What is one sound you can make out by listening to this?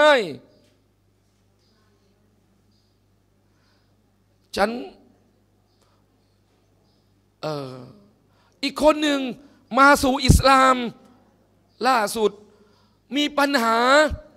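A man speaks calmly into a microphone, with long pauses between phrases.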